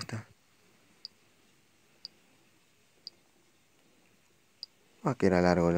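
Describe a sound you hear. Short, soft message alert tones chime one after another.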